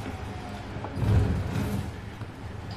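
A car crashes through brush with a thud.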